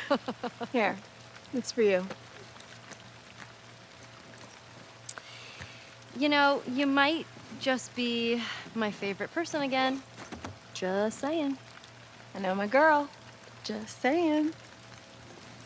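A second young woman answers calmly.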